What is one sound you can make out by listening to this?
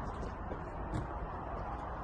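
Bread pieces drop onto a wooden table.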